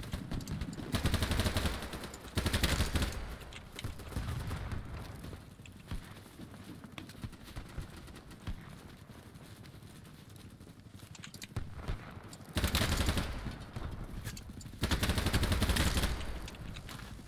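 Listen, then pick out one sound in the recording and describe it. Gunfire rings out in loud bursts.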